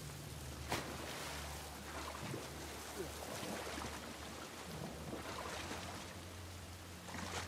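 Water splashes as a person swims.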